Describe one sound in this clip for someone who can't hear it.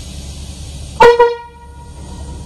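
A train horn sounds one short loud blast.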